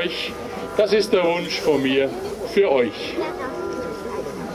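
A man speaks slowly and solemnly through a microphone and loudspeakers outdoors.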